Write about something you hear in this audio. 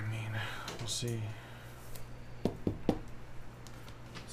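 Trading cards rustle and click as they are handled.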